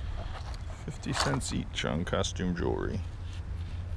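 Metal jewelry clinks and jingles as a hand sorts through it.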